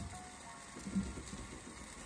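Potatoes knock softly against a clay pot.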